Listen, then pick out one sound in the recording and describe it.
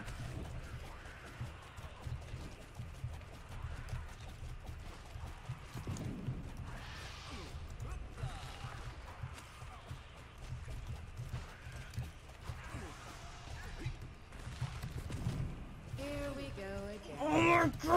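A young boy talks with animation, close to a microphone.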